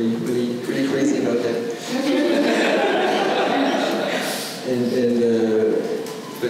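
A man speaks calmly into a microphone, heard through loudspeakers in a room with some echo.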